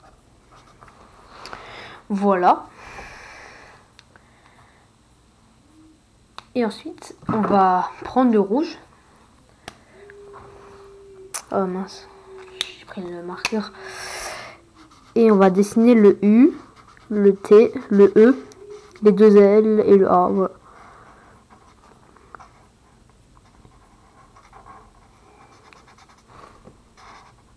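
A felt-tip marker scratches and squeaks softly on paper.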